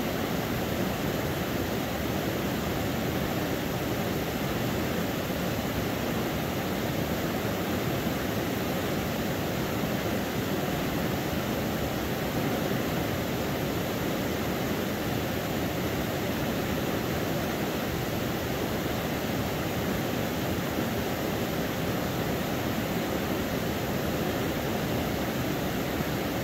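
Water laps gently against rocks along the shore.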